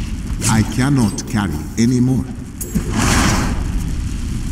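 Fantasy combat sound effects clash and crackle.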